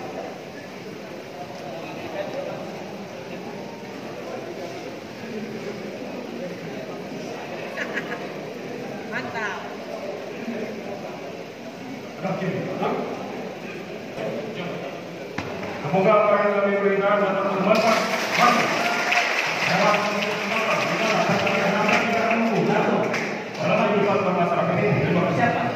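A crowd of people murmurs and chatters in a large echoing hall.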